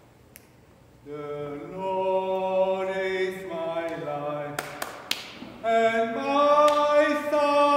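An elderly man sings a slow chant into a microphone in a large echoing hall.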